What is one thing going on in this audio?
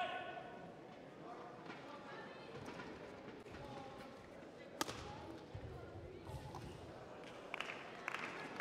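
Shuttlecocks are struck sharply by rackets in a large echoing hall.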